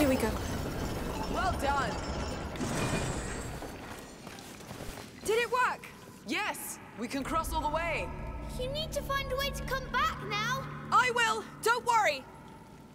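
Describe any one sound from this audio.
A man talks through a headset microphone.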